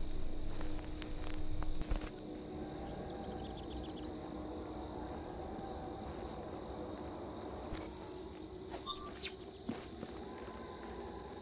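Footsteps tread steadily along a road outdoors.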